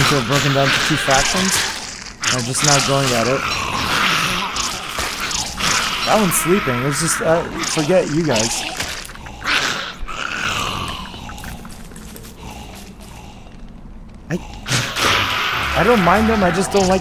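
Small creatures screech and hiss in a scuffle.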